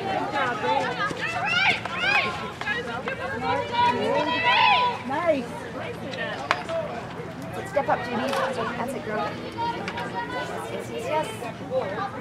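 A hockey stick strikes a ball with sharp cracks.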